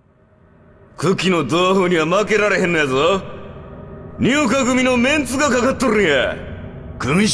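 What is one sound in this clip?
A man speaks gruffly with animation.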